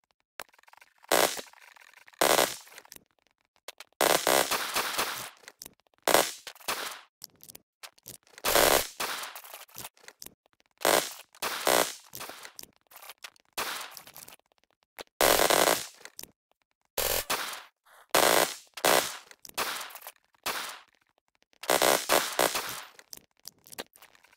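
A rifle fires in short bursts.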